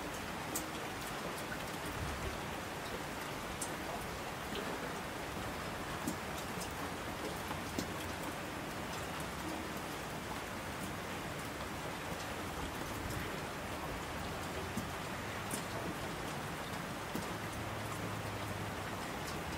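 Water rushes and splashes down rocky streams.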